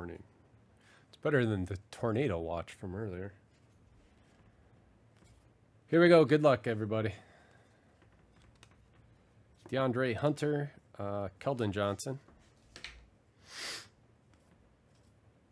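Trading cards slide and flick against each other in someone's hands.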